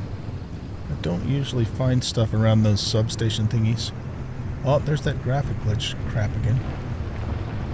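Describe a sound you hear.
An elderly man talks into a headset microphone.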